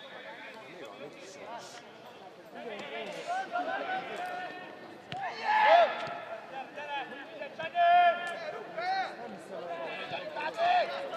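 Men shout loudly across an open field outdoors.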